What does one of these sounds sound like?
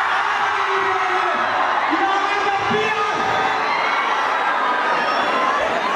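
A man shouts into a microphone with excitement.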